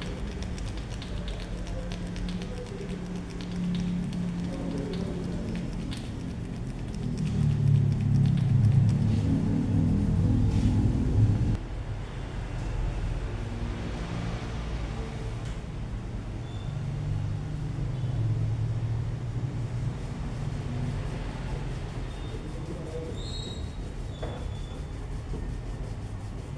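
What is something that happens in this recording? Fingers rub and press through hair during a head massage.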